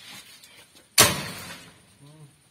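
A loud bang rings out against a metal door.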